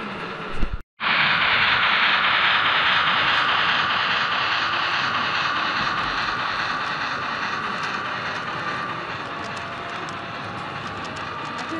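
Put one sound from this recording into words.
A model steam locomotive hisses loudly as it runs along the track.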